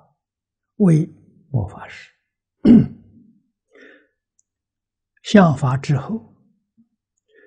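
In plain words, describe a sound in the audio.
An elderly man speaks calmly and slowly into a close microphone, in short phrases with pauses.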